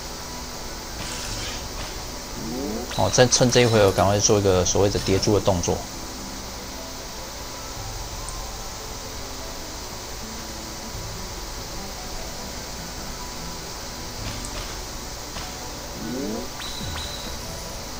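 Game chimes and pops ring out as gems match and combos build.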